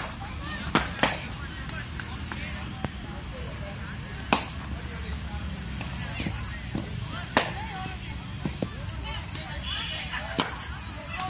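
A cricket bat sharply strikes a ball several times.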